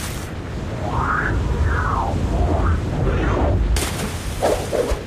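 Deep water rumbles low and steadily.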